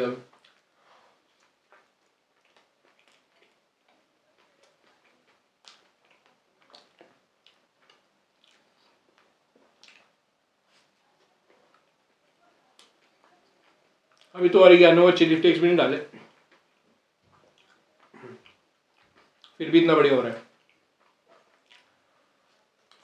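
A man chews food with soft, wet smacking sounds close by.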